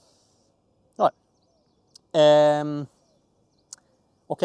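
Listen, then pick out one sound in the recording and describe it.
A young man speaks briefly and calmly close to a microphone.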